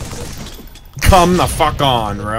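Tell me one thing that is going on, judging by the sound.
A young man exclaims loudly into a close microphone.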